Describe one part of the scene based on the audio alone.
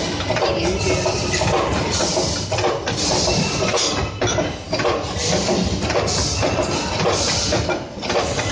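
A metal tube scrapes as it slides into a machine.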